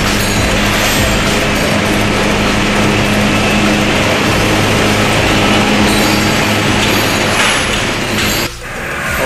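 Heavy cane conveyor machinery rumbles with a steady hum in a large echoing shed.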